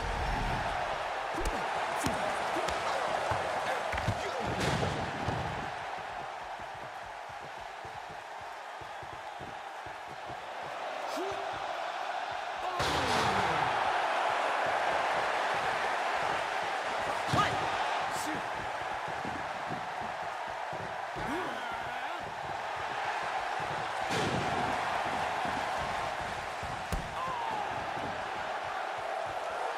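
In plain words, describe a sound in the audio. A crowd cheers steadily in a large arena.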